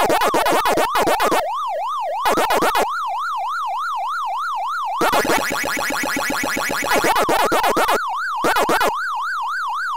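Quick electronic chomping blips come in bursts.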